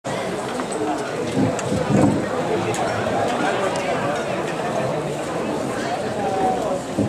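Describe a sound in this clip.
A large crowd murmurs and calls out across an open stadium.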